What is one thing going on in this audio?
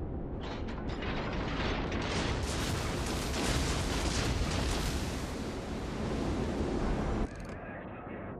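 Shells splash heavily into the water nearby.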